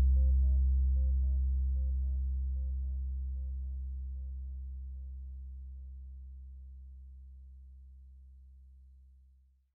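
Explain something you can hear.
A synthesizer plays a repeating pattern of short notes that slowly fades.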